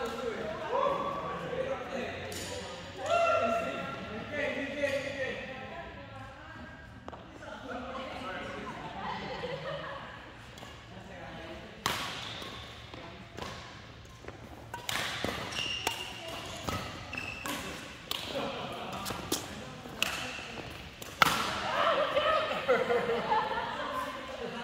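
Men and women talk casually across the hall.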